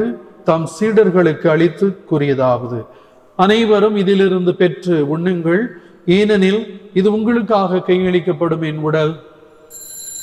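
An elderly man chants through a microphone in an echoing hall.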